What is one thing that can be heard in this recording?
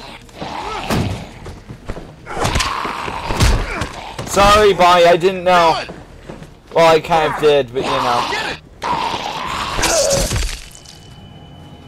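Heavy thuds and blows land.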